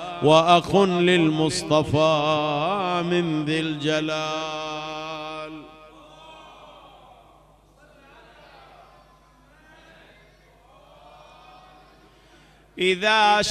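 A man chants in a long, melodic voice through a microphone, with pauses between phrases.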